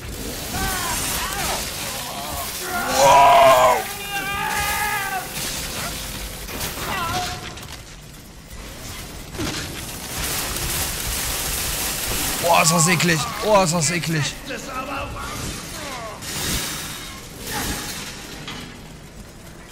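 A chainsaw engine runs and roars.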